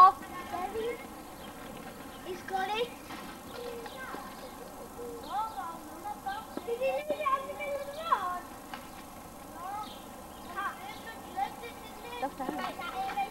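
Young girls chatter and call out nearby, outdoors.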